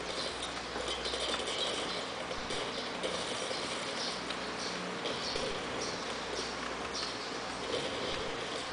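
Footsteps and game noises play through small speakers.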